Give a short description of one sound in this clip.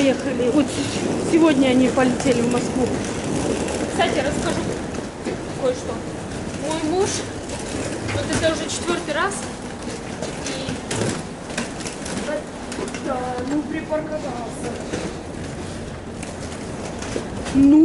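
A young woman talks casually close by, with a slight echo.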